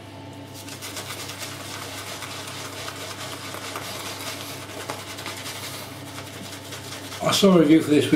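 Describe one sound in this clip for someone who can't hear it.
A razor scrapes over stubble close by.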